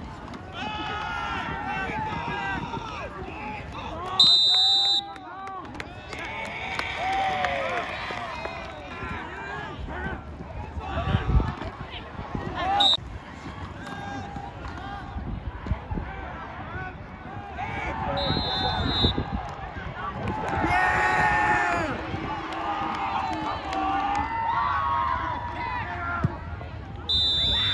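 A crowd cheers and shouts in an outdoor stadium.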